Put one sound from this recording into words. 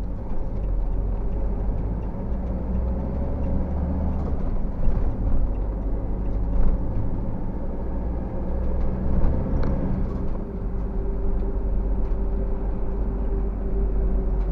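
A car engine hums steadily from inside the vehicle as it drives.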